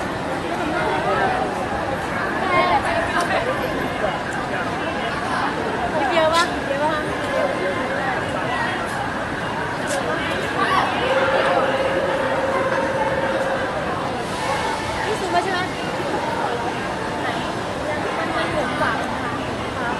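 A crowd of people chatter and shout excitedly nearby.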